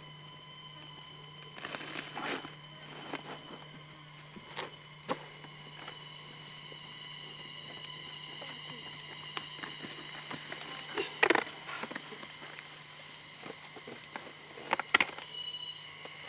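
Wood pulp is scraped and knocked from a log by hand.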